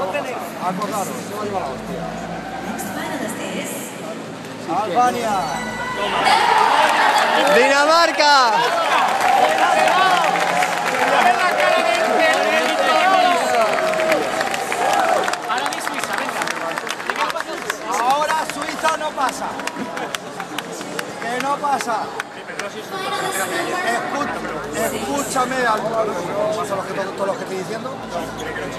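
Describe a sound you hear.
Loud music plays through loudspeakers in a big echoing arena.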